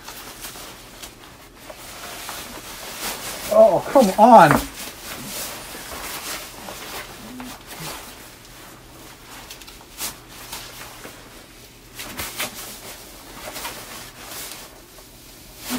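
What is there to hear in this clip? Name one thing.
Fabric rustles as a man pulls a hood on and off.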